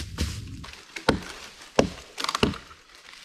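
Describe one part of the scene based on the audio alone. Dead branches snap loudly up close as a man breaks them.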